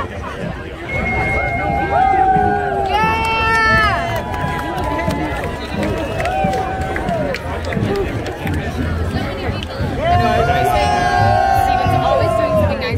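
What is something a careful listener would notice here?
Men and women in the crowd shout and cheer loudly nearby.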